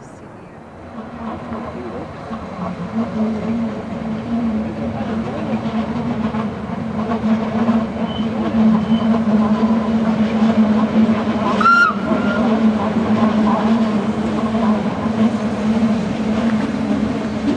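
An electric train rumbles along the rails nearby, with a steady hum.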